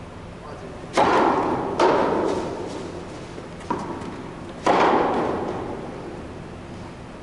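Tennis rackets strike the ball with loud echoing pops in a large hall.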